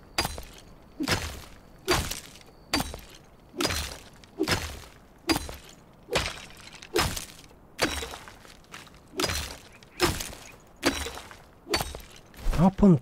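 A pickaxe strikes rock again and again at a steady pace.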